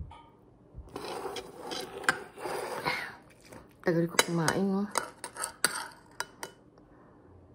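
A fork scrapes against a plate.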